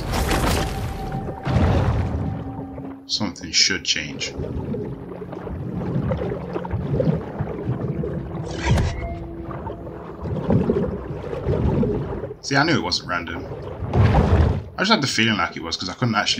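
Muffled underwater rumbling goes on steadily.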